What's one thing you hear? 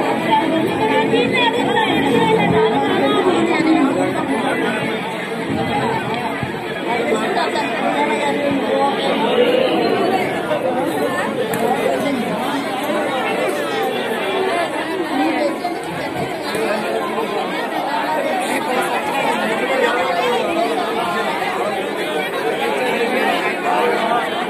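A crowd of men and women chatters and shouts loudly all around.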